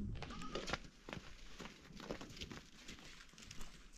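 Footsteps crunch on dry dirt outdoors.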